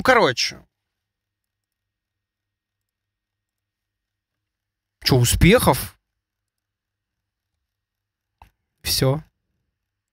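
A young man speaks in short bursts close to a microphone, with pauses between.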